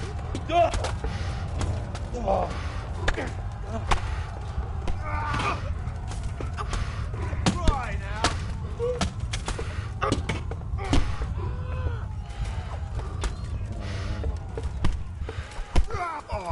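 Swords and shields clash and clang in a battle.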